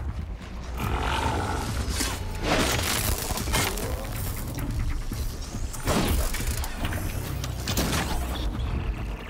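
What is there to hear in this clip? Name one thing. A large mechanical beast roars and clanks nearby.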